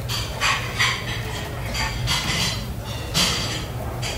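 A knife cuts through cooked meat against a wooden board.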